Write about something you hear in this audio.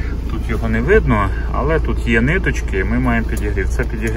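A dashboard button clicks.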